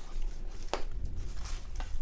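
Plastic wrap crinkles.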